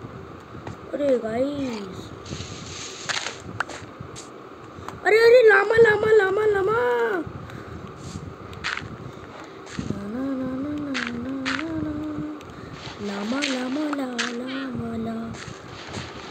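A young boy talks close by, with animation.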